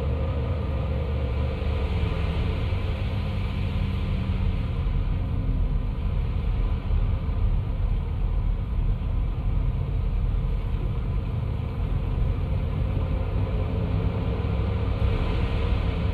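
A car engine hums as the car drives through traffic.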